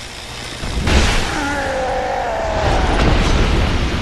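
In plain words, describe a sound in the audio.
A magic blast bursts with a loud whoosh.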